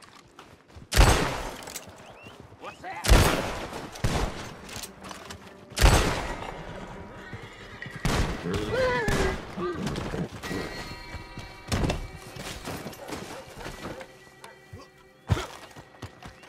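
Loud gunshots ring out one after another, with echoing tails.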